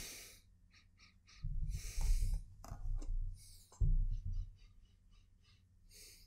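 A cardboard box is set down on a wooden table.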